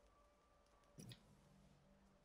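A short electric buzz sounds as a puzzle resets.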